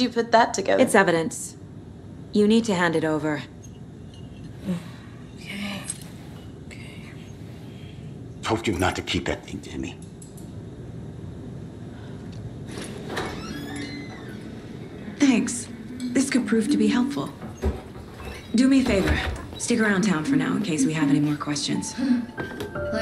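A woman speaks firmly and calmly, close by.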